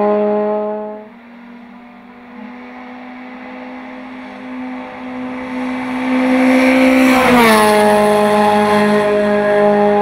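A racing car engine grows louder as the car approaches and roars past close by.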